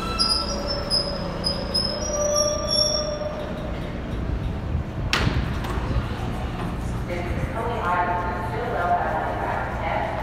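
A subway train rolls slowly along the track with a low rumble.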